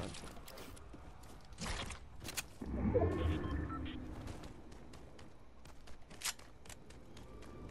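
Footsteps patter quickly across hard ground.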